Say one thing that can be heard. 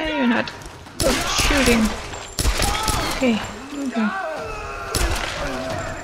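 Pistol shots ring out, sharp and loud.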